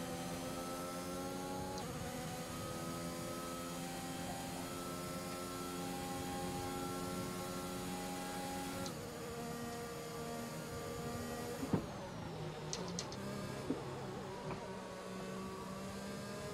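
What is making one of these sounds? A racing car engine whines at high revs and shifts gears.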